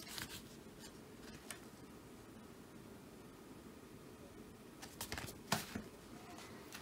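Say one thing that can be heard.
Paper pages rustle as a comic book is handled.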